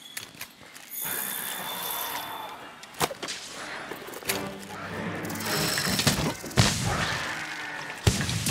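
A blade slashes and strikes a creature with sharp impacts.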